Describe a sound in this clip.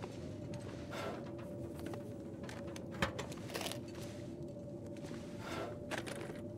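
A metal desk drawer slides open.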